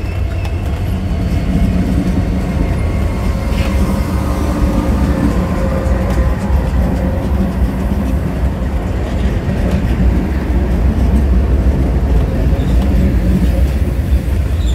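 Diesel locomotive engines drone loudly as they pass.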